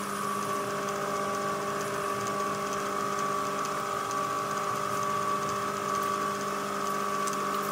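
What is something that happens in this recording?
A cutting tool scrapes against spinning metal.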